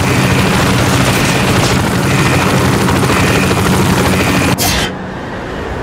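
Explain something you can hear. A helicopter's rotor thumps and engine drones nearby.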